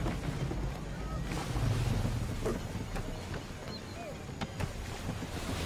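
Waves wash against the hull of a sailing ship.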